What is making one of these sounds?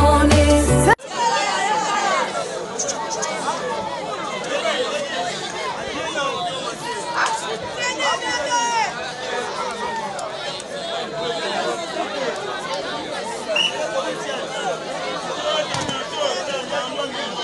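A large outdoor crowd chatters and shouts with excitement.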